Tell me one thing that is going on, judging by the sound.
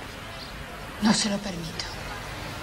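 A middle-aged woman speaks briefly and quietly.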